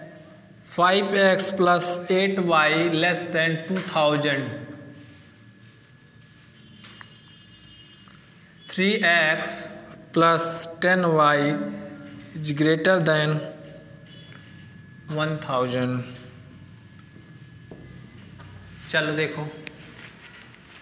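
A man speaks calmly nearby, in bursts with pauses.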